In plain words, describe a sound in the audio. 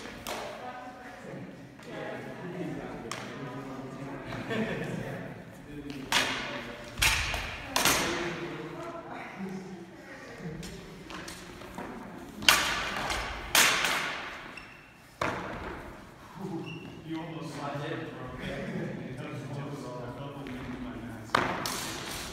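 Wooden practice swords clack together sharply in a large echoing hall.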